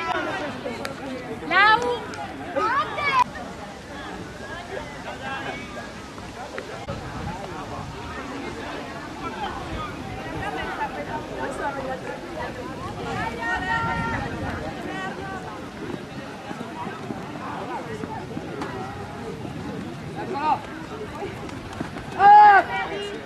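Outdoors, a crowd of young people chatters and calls out across an open field.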